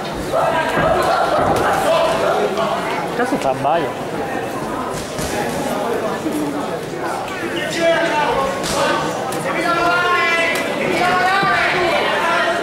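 Gloved punches thud against a fighter.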